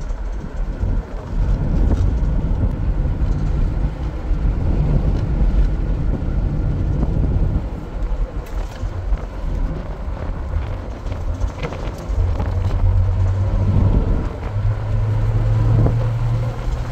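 A car's interior rattles and clatters over bumps.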